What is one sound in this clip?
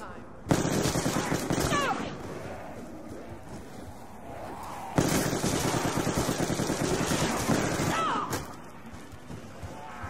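Zombies growl and snarl up close.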